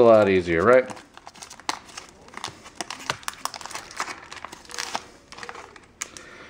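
Playing cards rustle softly as they are handled.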